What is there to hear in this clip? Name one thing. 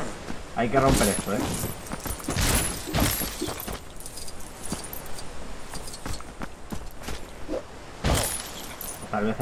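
Toy bricks clatter and smash apart.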